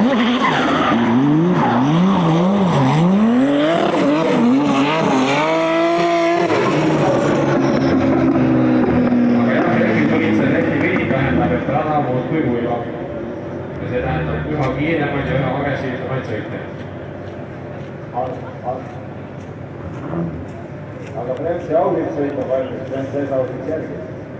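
A car engine revs up and down repeatedly, then settles and fades.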